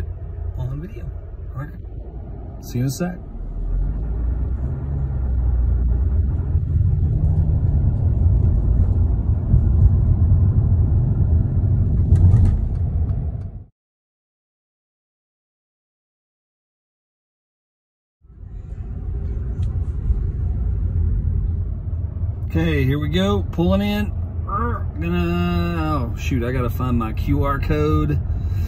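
A car engine hums low inside a moving car.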